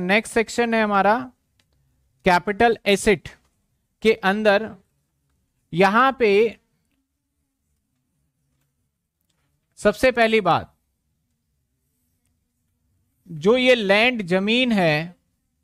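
A man speaks calmly into a clip-on microphone, in short phrases with pauses.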